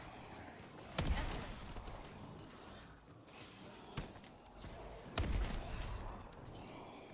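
Heavy explosions boom nearby.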